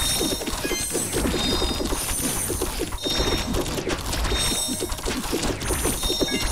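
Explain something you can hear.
Video game combat sounds clash and ring rapidly.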